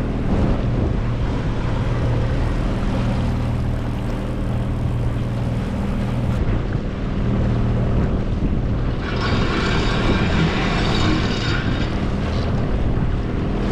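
A boat's engine hums steadily.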